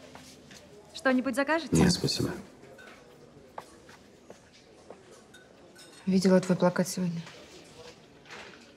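A young woman speaks softly and closely.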